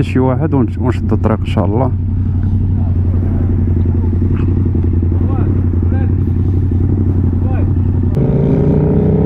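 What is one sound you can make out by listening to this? A motorcycle engine idles with a deep steady rumble.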